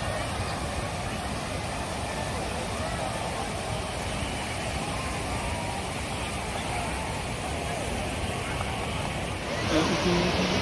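Waves break and wash onto the shore nearby.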